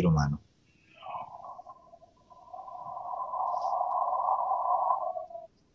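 A second man answers over an online call, sounding thin and muffled.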